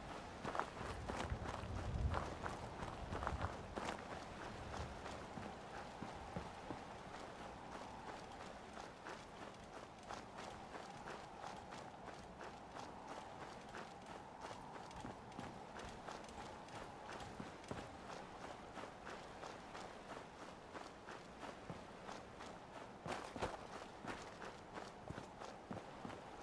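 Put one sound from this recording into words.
Footsteps tread steadily over dirt and gravel.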